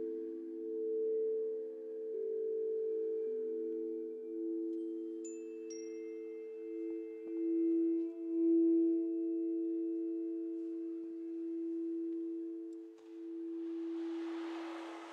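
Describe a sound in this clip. Crystal singing bowls ring with steady, overlapping tones that swell and fade.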